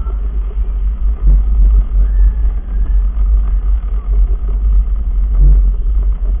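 A go-kart engine hums nearby.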